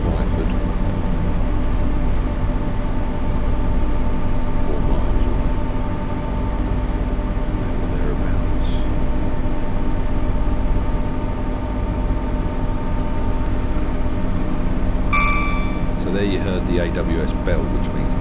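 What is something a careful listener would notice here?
A train engine hums and rumbles steadily as it gathers speed.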